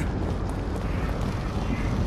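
A fire crackles and roars nearby.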